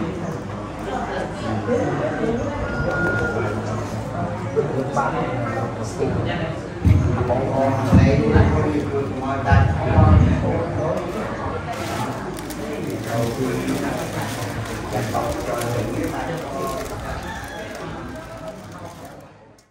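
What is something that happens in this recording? A crowd of men and women murmurs and talks nearby.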